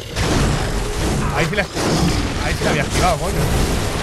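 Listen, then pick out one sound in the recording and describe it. Fire bursts and roars in loud rushes.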